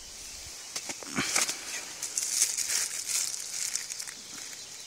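Foil crinkles and rustles as a hand handles it.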